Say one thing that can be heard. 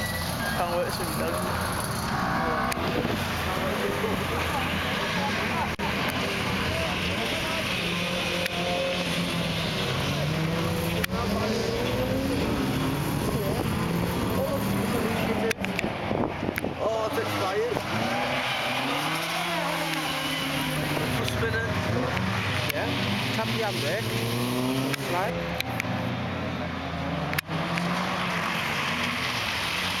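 Rally car engines rev hard as the cars race past.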